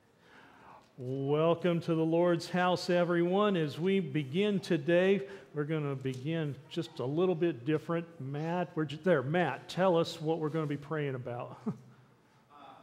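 A man speaks loudly and with animation into a microphone in an echoing hall.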